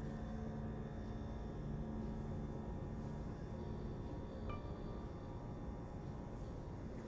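A cloth rubs softly against a small wooden surface.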